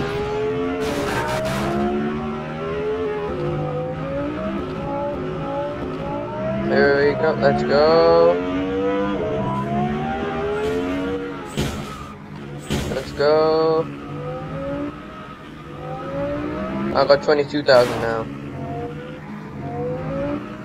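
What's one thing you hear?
A sports car engine revs and roars.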